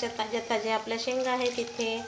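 Water splashes as vegetables are lifted out of a bowl.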